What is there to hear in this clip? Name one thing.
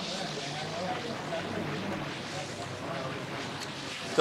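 A young man chews food.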